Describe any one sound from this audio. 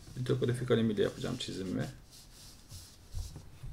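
Sheets of paper slide and rustle across a table.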